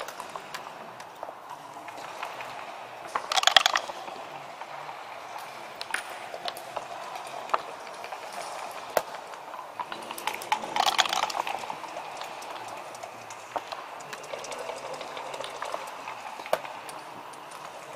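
Game pieces click and slide on a wooden board.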